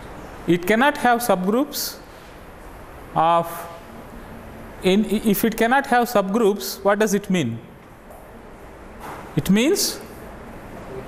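A middle-aged man lectures calmly in a room with some echo, in bursts with pauses.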